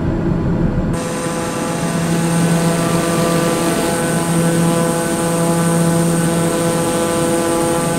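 A propeller plane hums steadily with a higher, buzzing drone, heard from outside.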